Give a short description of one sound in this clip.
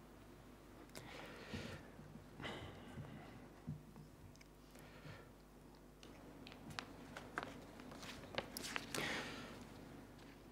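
A man breathes audibly close to a microphone.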